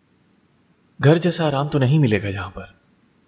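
A younger man answers calmly, close by.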